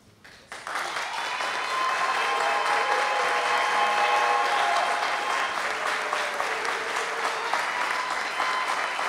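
Women in a crowd ululate and shout with joy.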